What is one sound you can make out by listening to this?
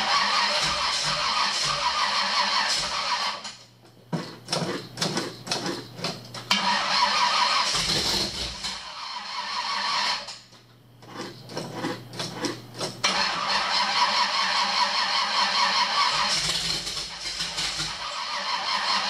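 A large engine idles loudly and roughly in an echoing room.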